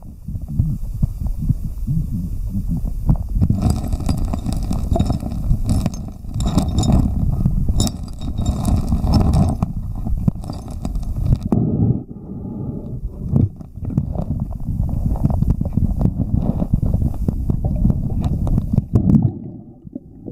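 Water rushes and churns in a deep, muffled rumble.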